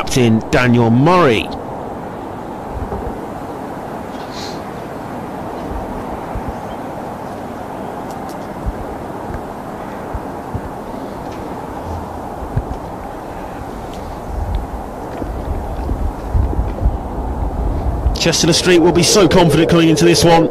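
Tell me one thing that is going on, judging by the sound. Wind blows across an open field outdoors.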